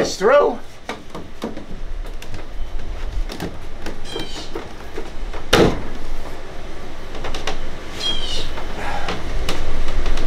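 Plastic pipe fittings click and knock as they are pushed together.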